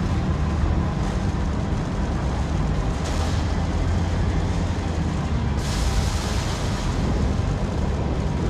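A vehicle engine rumbles steadily.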